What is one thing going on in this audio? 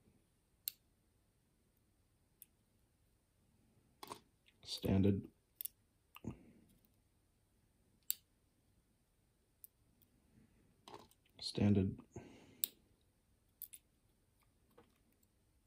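A small metal pick clicks and scrapes inside a lock.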